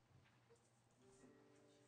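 A guitar gives a few soft plucked notes.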